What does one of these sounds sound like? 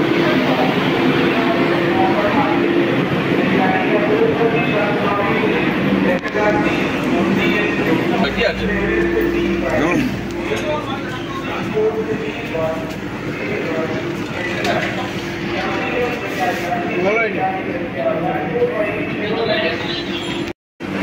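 Several men talk nearby.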